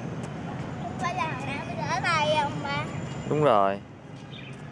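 A young child shouts excitedly close by.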